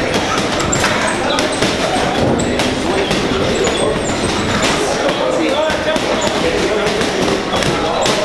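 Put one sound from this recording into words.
Fists thud against a heavy punching bag.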